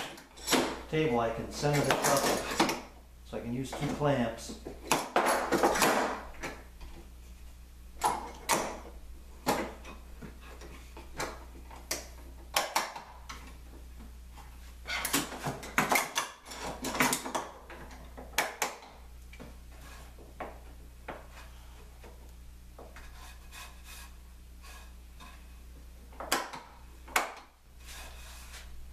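Metal clamps clink and clatter against a work table.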